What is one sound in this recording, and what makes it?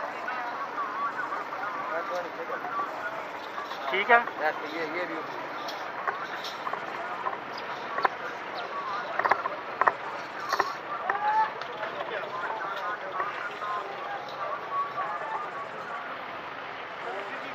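A crowd of men and women chatter all around outdoors.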